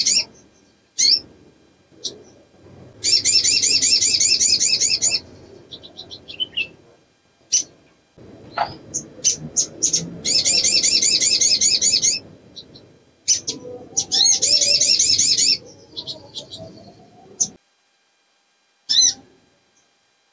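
A small bird sings rapid, trilling phrases and sharp chirps close by.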